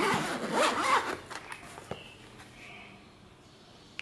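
A plastic case clicks open.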